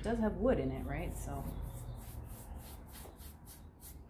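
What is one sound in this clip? A paintbrush swishes softly across wood.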